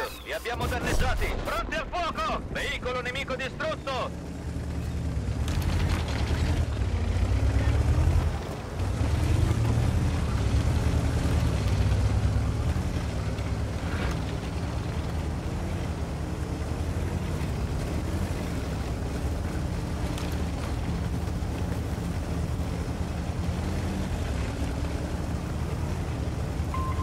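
A tank engine rumbles low and steady as the tank drives.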